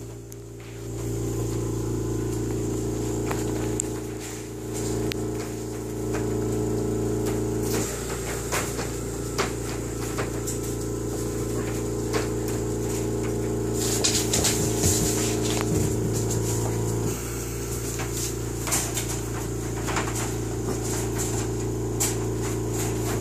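A wire crate rattles as puppies paw at it.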